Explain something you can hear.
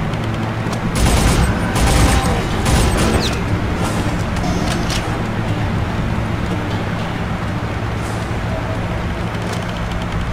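Climbing steps clank on a metal ladder.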